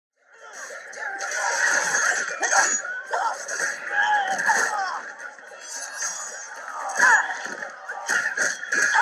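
Men and women shout and scream in alarm.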